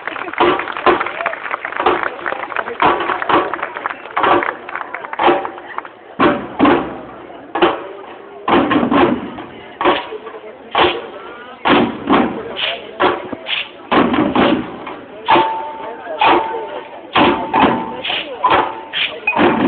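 A large crowd talks and calls out outdoors.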